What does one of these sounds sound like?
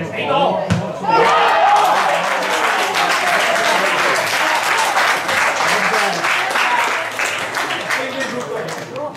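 Young men shout and cheer in the distance outdoors.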